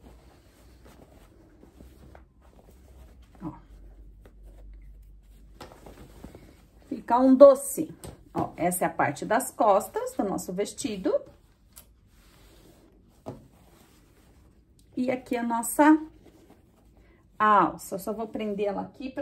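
Fabric rustles softly as hands fold and smooth it.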